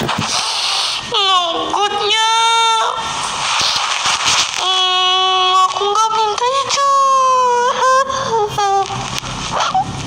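A young woman sobs and wails loudly and close by.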